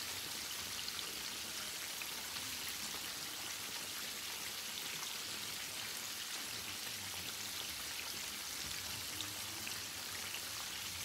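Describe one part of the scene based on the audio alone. A metal utensil scrapes and taps against a pan.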